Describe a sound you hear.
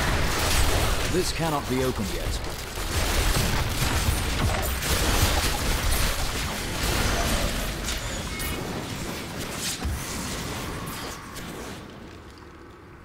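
Game combat crashes and explodes loudly with many blows and bursts.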